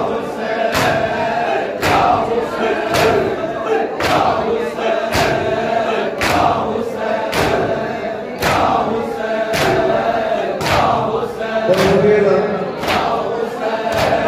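Hands beat on chests in a steady, regular rhythm.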